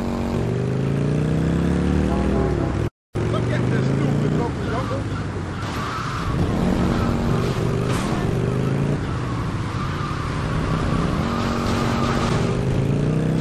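A motorcycle engine roars and revs up and down steadily.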